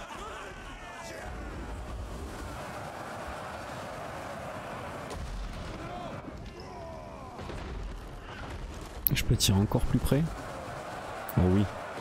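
Fireballs burst with loud, deep booms.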